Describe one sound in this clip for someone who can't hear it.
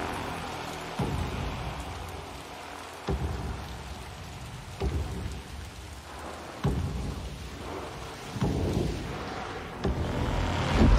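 Heavy booming footsteps approach slowly, one every two seconds.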